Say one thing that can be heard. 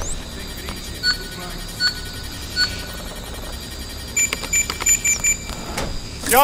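Electronic keypad beeps sound in short, even bursts.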